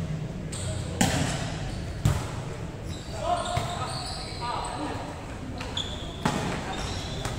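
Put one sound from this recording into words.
A volleyball is struck by hand, echoing in a large hall.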